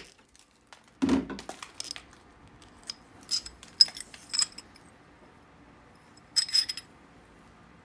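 A plastic sheet crinkles and rustles in hands.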